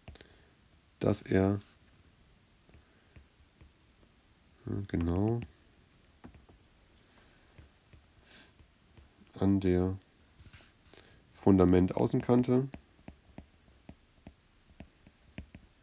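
A stylus taps and scratches lightly on a tablet's glass.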